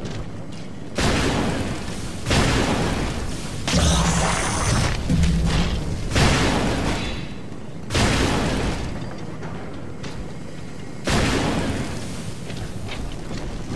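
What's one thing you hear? Bursts of fire roar and crackle loudly.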